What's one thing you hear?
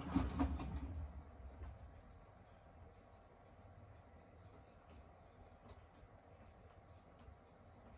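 A washing machine motor hums softly.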